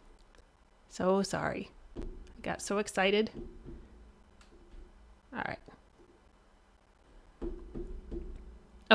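A woman talks with animation into a close microphone.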